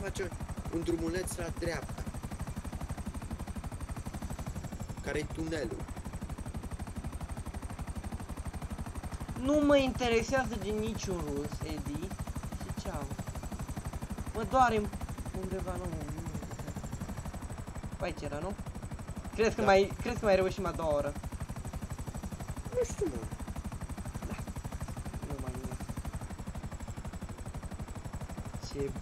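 A helicopter's rotor thumps steadily as it flies low.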